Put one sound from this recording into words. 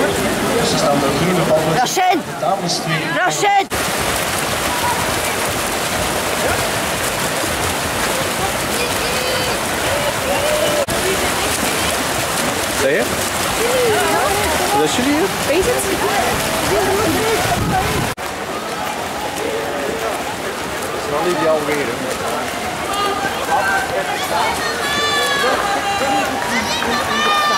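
Swimmers splash and thrash through the water.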